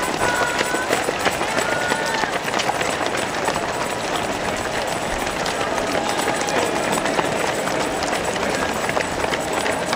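A crowd of spectators cheers and calls out nearby.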